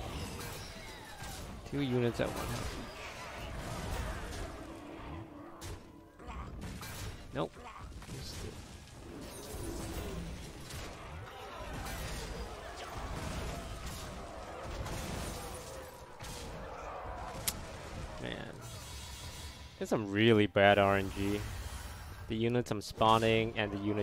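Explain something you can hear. Electronic game effects clash and burst.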